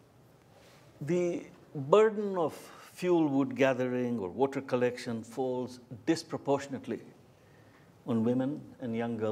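A middle-aged man speaks calmly into a microphone, as if giving a talk.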